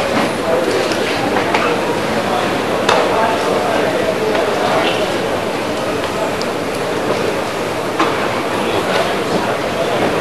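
A martial artist's uniform snaps sharply with quick strikes.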